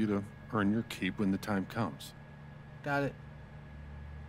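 An older man speaks calmly with a deep voice.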